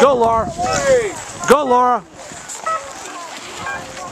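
Skis scrape over hard snow.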